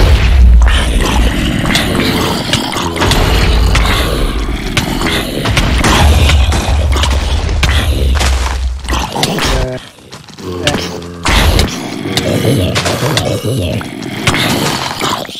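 Sword blows land with quick, dull thuds.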